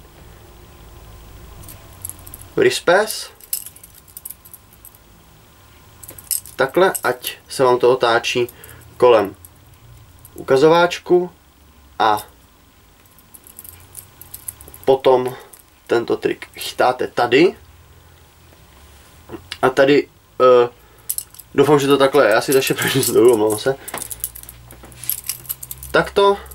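A butterfly knife clicks and clatters as it is flipped open and shut.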